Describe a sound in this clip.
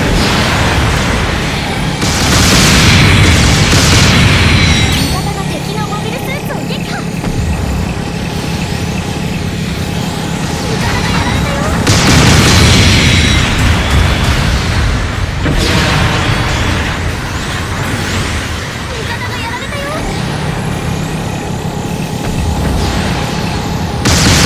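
Rocket thrusters roar steadily.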